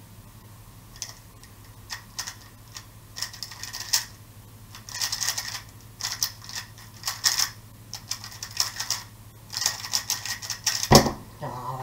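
A puzzle cube clicks and clatters as it is turned rapidly.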